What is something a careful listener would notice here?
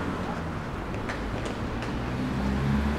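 Footsteps tap on a paved sidewalk nearby.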